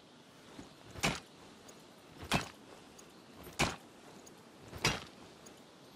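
A pickaxe strikes rock in sharp, evenly spaced blows.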